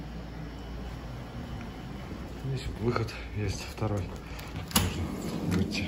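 A sliding glass door rolls open.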